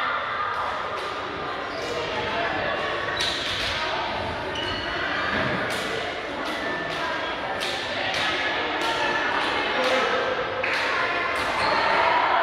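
Hands clap and slap together in high fives.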